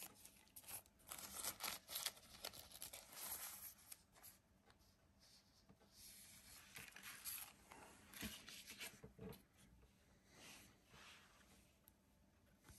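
Plastic packaging crinkles and rustles in hands.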